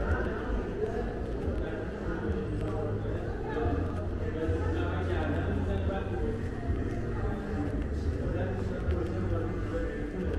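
Voices of people chatter in a large echoing hall.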